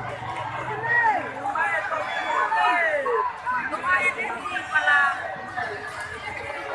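A large outdoor crowd shouts and cheers excitedly.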